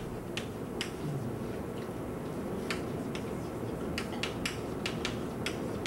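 Chalk taps and scrapes on a blackboard in short strokes.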